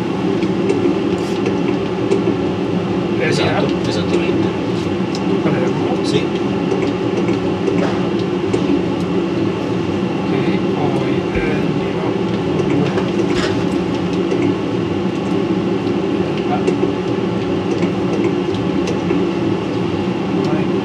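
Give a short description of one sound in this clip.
A loud, steady roar of engines and rushing air drones on.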